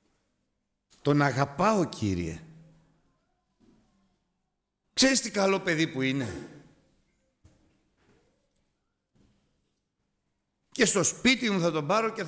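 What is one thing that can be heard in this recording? A middle-aged man speaks slowly and with emphasis through a microphone, in a roomy, echoing hall, with long pauses between phrases.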